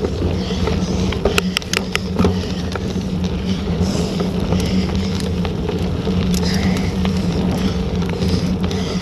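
Bicycle tyres roll and crunch over a wet, muddy track.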